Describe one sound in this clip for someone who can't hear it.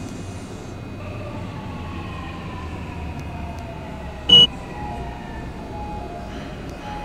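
A train's motor whines, falling slowly in pitch as it slows.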